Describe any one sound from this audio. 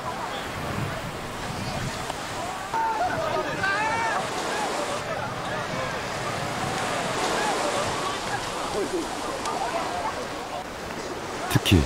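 Waves wash onto the shore.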